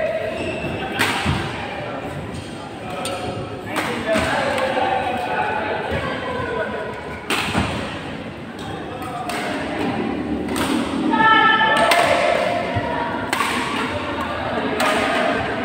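Shuttlecocks are struck with sharp pops by badminton rackets in a large echoing hall.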